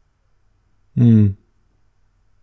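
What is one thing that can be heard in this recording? A man speaks a short word up close.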